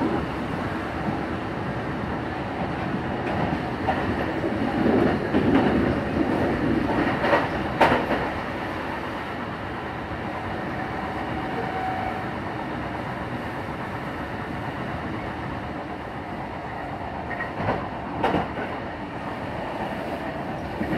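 A train rumbles and rattles steadily along the tracks.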